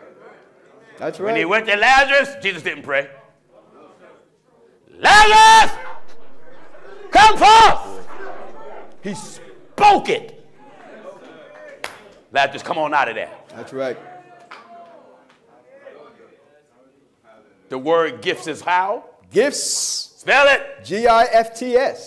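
A man preaches loudly through a microphone in a large echoing hall, his voice rising to shouts.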